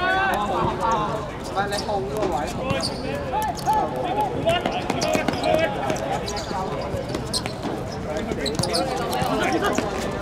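Sneakers squeak on the hard court surface.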